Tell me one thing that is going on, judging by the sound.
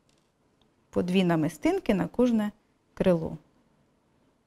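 A young woman speaks calmly and briefly, close to a microphone.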